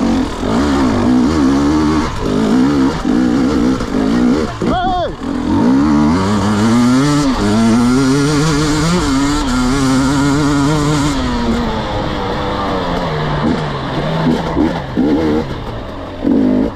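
Tyres crunch and skid over loose dirt and rocks.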